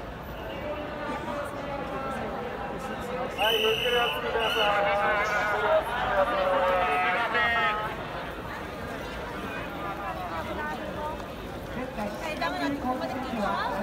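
A large crowd of men and women chatters and shouts outdoors.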